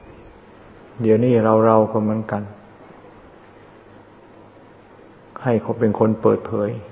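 An elderly man speaks calmly in short phrases.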